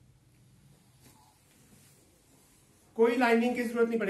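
Fabric rustles softly as it is lifted and laid down.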